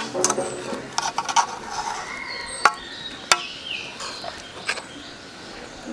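A metal ladle clinks and scrapes against a metal pot.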